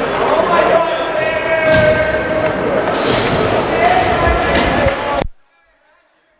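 A crowd cheers loudly in an echoing arena.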